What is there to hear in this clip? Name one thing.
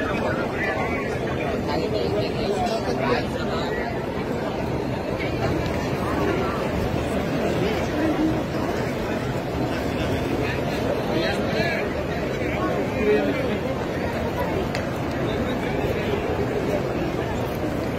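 A large crowd murmurs and chatters all around, outdoors.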